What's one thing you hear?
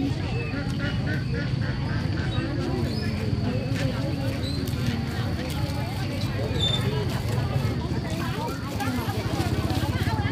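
Several women chat nearby among a murmur of voices outdoors.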